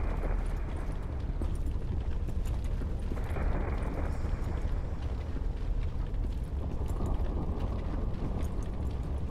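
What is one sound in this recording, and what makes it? Footsteps tap on stone as a character runs.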